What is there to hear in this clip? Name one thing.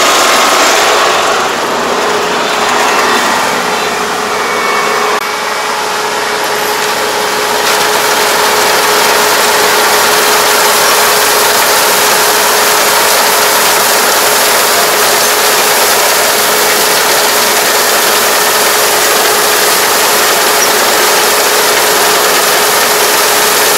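A harvester engine runs loud and steady close by.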